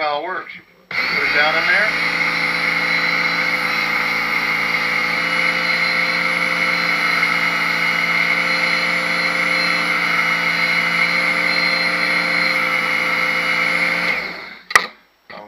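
An electric knife sharpener whirs steadily as a blade grinds through it.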